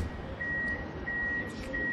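A tram's door warning beeps in short, even bursts.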